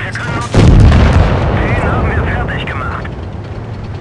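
A shell explodes with a loud boom that rumbles away.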